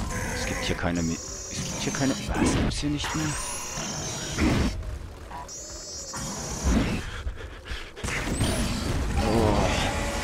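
A large creature roars and growls close by.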